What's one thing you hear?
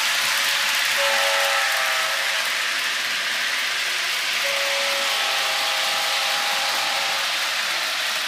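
A toy train horn toots.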